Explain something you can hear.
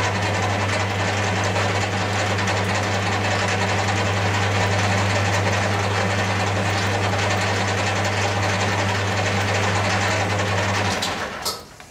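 A tool scrapes against a spinning workpiece.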